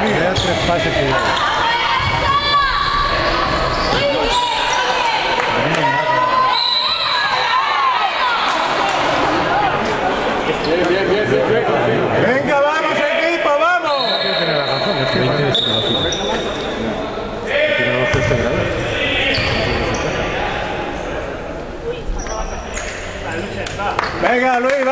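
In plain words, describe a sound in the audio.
Voices of young men and spectators echo through a large hall.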